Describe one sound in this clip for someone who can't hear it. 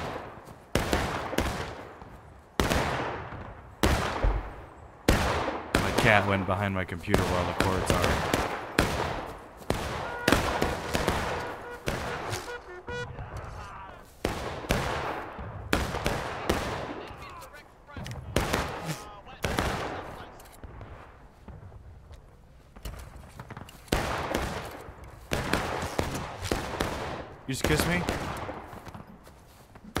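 Rifle shots crack nearby and echo through the woods.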